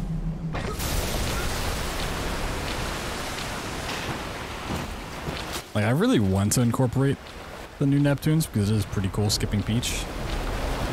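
Water rushes and churns loudly.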